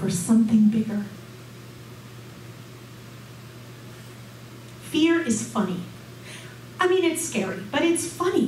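A woman speaks calmly into a microphone, heard through a loudspeaker.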